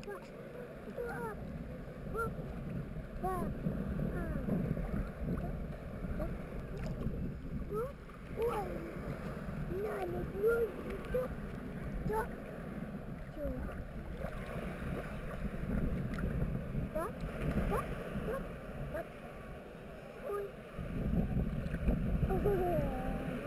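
A toddler babbles and squeals softly nearby.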